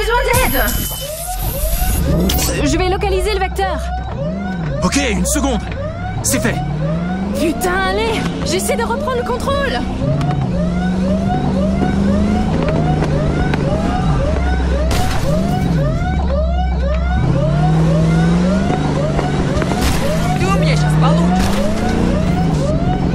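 A car engine roars and revs as the car speeds along.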